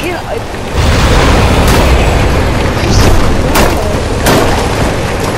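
Ice and blocks crack and shatter under a vehicle.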